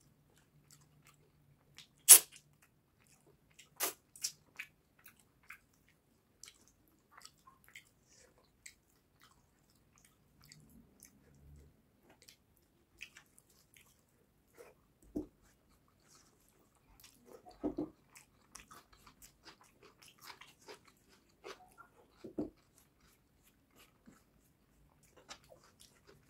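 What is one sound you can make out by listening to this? Fingers pick and tear at soft meat with faint crackles.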